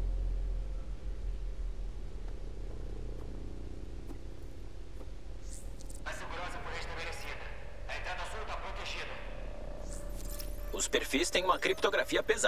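Footsteps walk softly on a stone floor.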